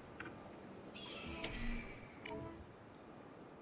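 Soft electronic chimes and whooshes play from a game.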